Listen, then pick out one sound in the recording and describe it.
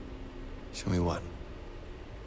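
A young man speaks briefly and calmly.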